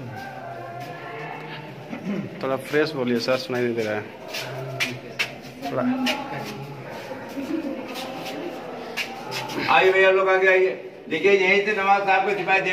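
A man talks nearby in a small echoing space.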